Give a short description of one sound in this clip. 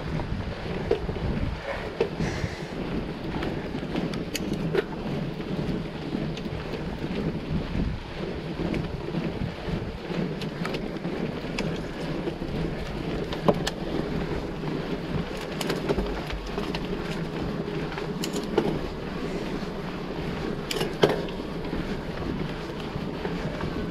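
Bicycle tyres rattle and bump over a cobbled path.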